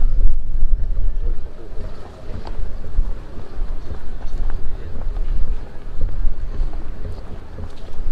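Footsteps tap on paving stones.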